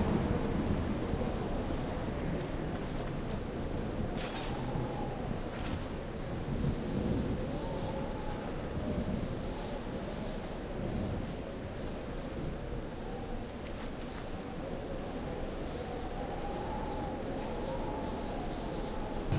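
Footsteps crunch along a dirt path.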